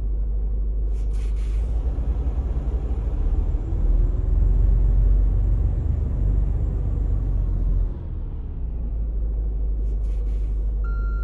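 Truck air brakes hiss.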